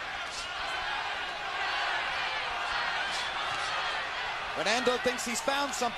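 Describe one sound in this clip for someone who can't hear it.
A crowd murmurs and cheers in a large arena.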